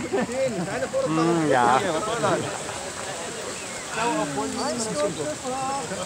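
A crowd of young people chatter and call out close by outdoors.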